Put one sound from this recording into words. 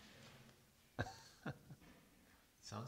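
A middle-aged man laughs softly.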